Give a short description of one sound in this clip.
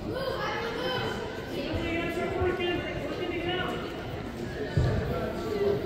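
Spectators shout encouragement in an echoing gym.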